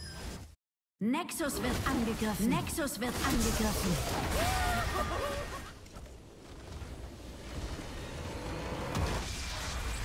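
Game sound effects of spells and blasts ring out in quick bursts.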